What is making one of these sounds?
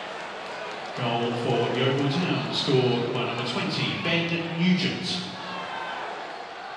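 A stadium crowd roars loudly in a sudden cheer.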